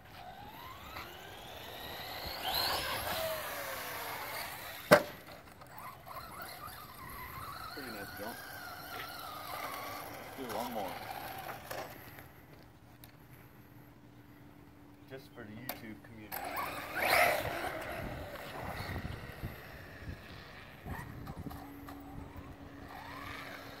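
A toy car's electric motor whines, rising and falling.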